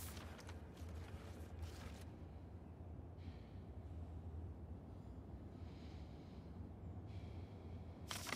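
A sheet of paper rustles in a hand.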